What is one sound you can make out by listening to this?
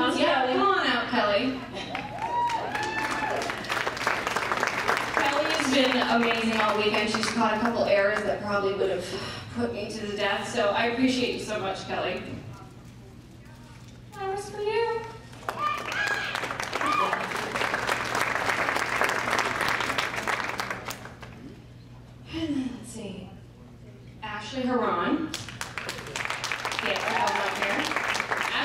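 A young woman speaks into a microphone over loudspeakers in a large hall.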